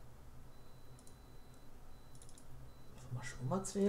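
Soft menu clicks tick a few times.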